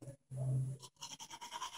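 A toothbrush scrubs rapidly against teeth.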